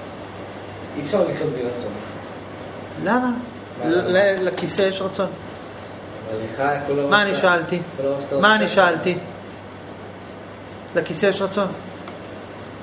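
A young man speaks calmly and close by, with pauses.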